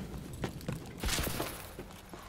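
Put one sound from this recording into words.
A gun fires a short burst.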